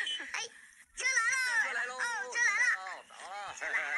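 A boy laughs loudly.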